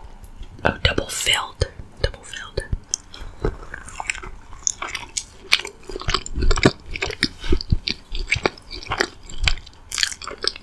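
A woman chews loudly and wetly close to a microphone.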